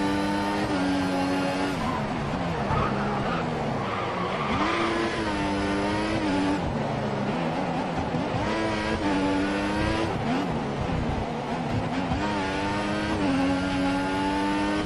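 A racing car engine screams at high revs, rising and falling as gears shift.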